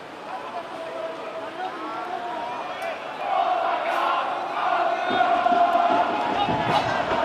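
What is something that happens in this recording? Young men shout and call out across an open field outdoors.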